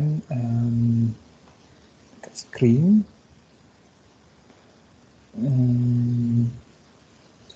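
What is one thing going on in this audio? A young man speaks in short, drawn-out bursts over an online call.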